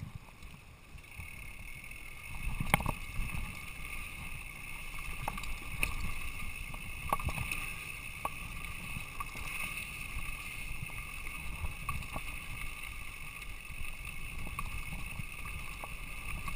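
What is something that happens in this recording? Mountain bike tyres roll and crunch over a dirt trail.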